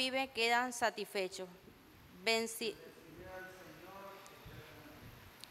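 A young woman reads out aloud through a microphone in an echoing room.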